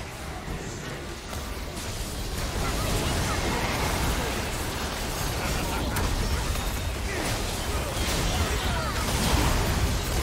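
Game spell effects whoosh, zap and crash in a busy fight.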